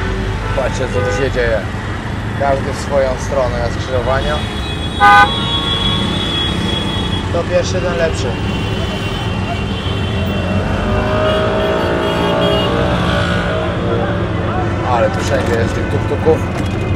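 Motorbikes and vehicles rumble close by in busy street traffic.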